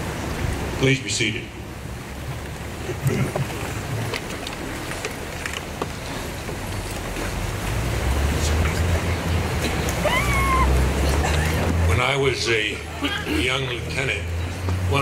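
A man speaks calmly into a microphone, heard through loudspeakers outdoors.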